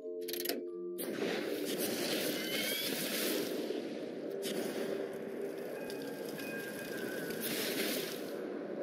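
A burst of fire whooshes and roars with a crackle.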